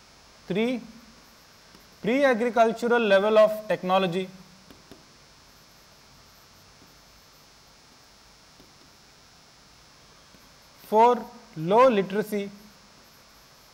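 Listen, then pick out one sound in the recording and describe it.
A man speaks calmly, as if teaching, in short bursts.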